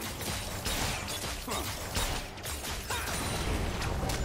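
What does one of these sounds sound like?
Magic spell effects whoosh and crackle in short bursts.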